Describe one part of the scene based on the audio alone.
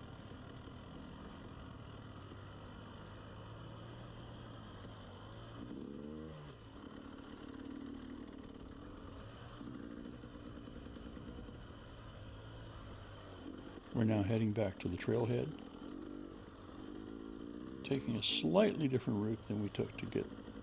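A two-stroke dirt bike putters along at low revs.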